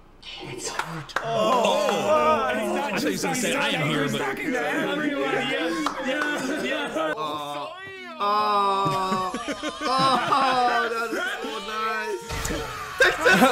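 Young men laugh together near microphones.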